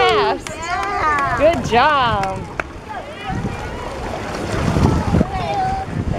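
Water splashes as a small boy wades through it.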